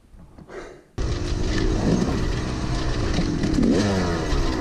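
Tyres rumble over a bumpy dirt trail.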